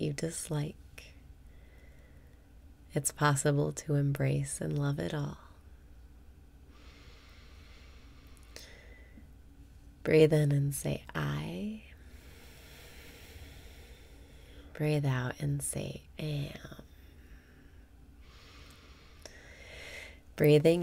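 A young woman speaks calmly and cheerfully, close to a microphone.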